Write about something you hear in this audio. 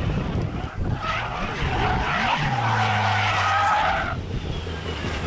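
Tyres screech loudly as a car slides around a bend.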